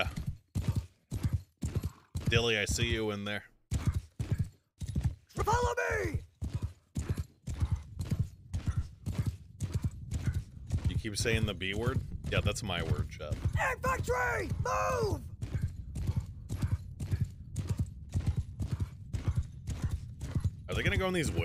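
A horse's hooves pound steadily at a gallop.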